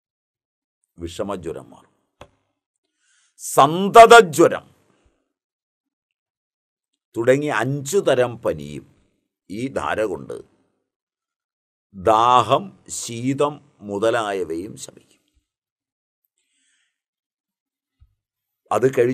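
An elderly man speaks forcefully into a close microphone, in short bursts with pauses.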